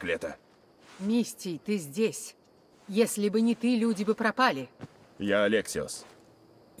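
An elderly woman speaks with animation, close by.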